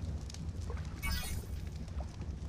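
A short bright chime rings out once.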